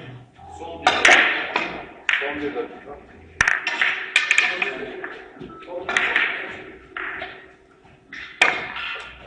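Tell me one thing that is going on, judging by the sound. Billiard balls click against each other and the table cushions.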